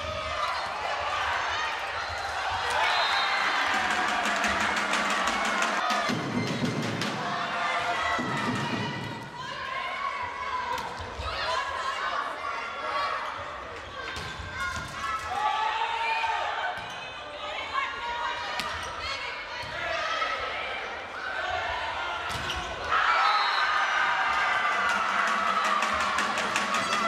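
A large crowd cheers and chants in a large echoing sports hall.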